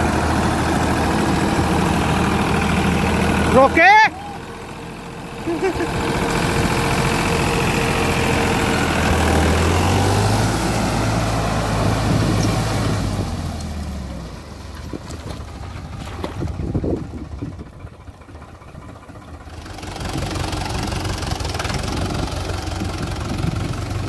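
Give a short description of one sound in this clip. Tractor tyres churn and splash through thick mud and water.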